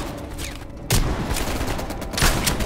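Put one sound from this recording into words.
Gunshots fire in rapid bursts inside a large echoing hall.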